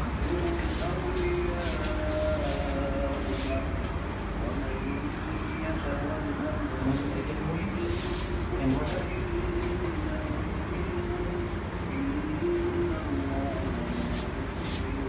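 Several men talk quietly nearby.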